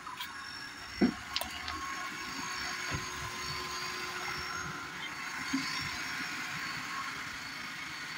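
Liquid pours from a plastic bottle.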